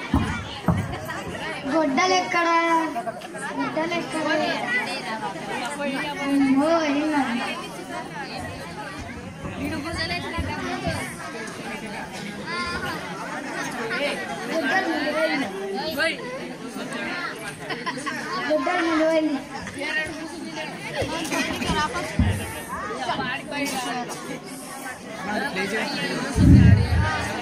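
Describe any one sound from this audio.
A boy speaks dramatically into a microphone over a loudspeaker.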